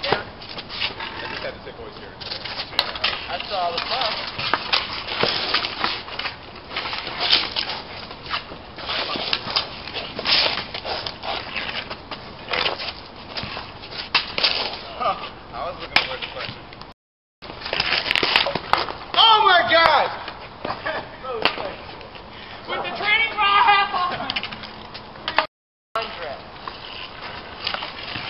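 Hockey sticks clack and scrape on pavement.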